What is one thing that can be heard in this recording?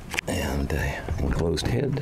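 A metal door latch clicks.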